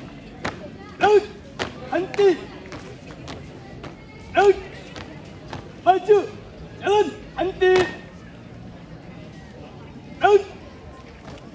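A man shouts drill commands loudly outdoors.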